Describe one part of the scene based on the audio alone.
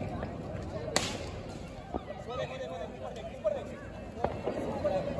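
A ground firework fizzes and bangs on the street.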